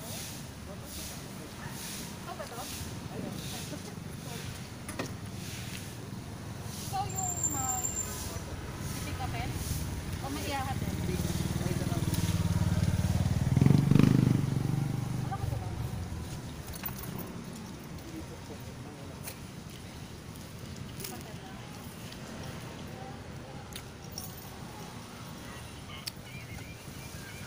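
A middle-aged woman talks casually, close by.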